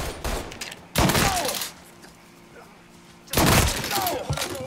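A shotgun fires loudly, twice.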